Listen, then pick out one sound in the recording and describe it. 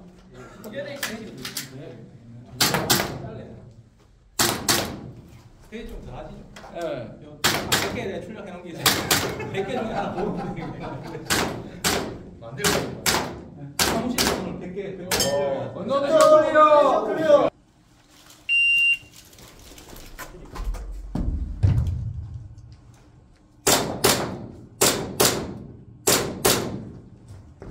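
Gunshots crack one after another and echo around a large hall.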